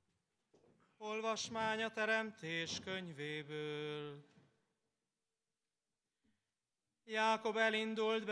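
A large crowd sings a hymn together outdoors.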